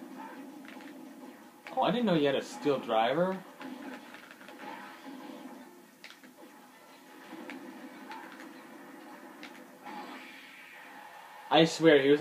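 Video game blasts and hits crackle through a small speaker.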